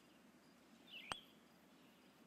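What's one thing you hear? A putter taps a golf ball with a sharp click.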